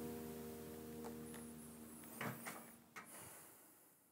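Fingers squeak and tap on guitar strings.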